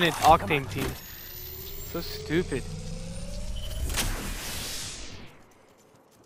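A game's shield battery charges with a rising electronic whine.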